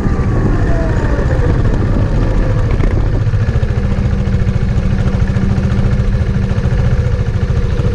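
Motorcycle engines rumble as riders approach and pull up close by.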